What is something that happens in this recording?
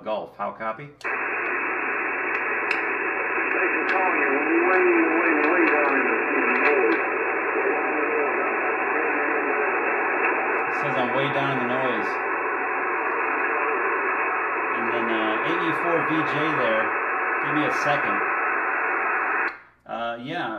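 Radio static hisses from a loudspeaker.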